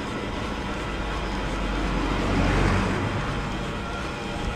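A car drives past close by and fades away.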